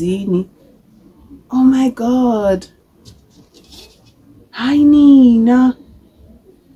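A young woman speaks close by in short, drawn-out phrases.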